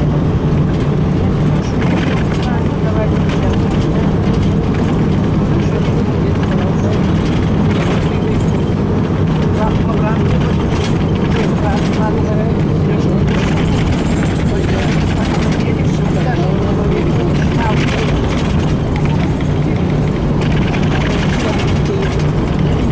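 A vehicle engine drones steadily, heard from inside the moving vehicle.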